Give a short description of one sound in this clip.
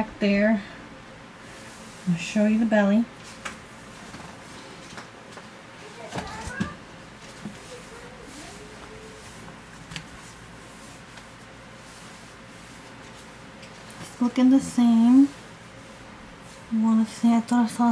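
A young woman talks calmly and close by, in short bursts.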